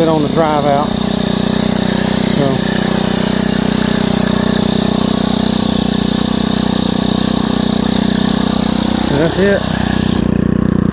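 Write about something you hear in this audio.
A string trimmer engine hums steadily and loudly close by.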